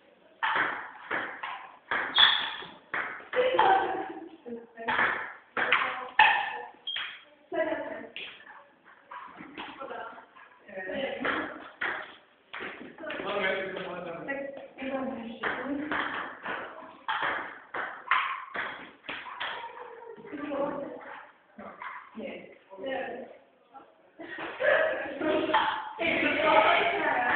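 A ping pong ball clicks back and forth on a table and paddles.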